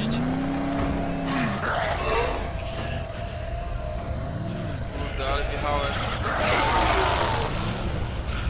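Metal crunches and bangs as a car crashes into wreckage.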